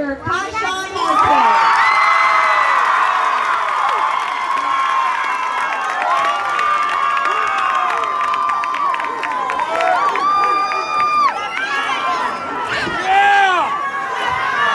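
A large crowd cheers and screams loudly outdoors.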